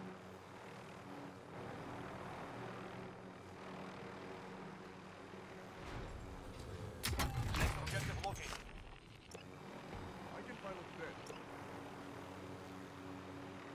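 A helicopter's rotor whirs and drones in flight.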